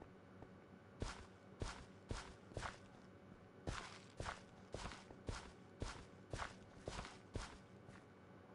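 A hoe scrapes into soil in quick, repeated short thuds.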